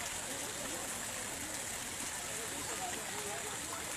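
A small waterfall splashes steadily into a pond.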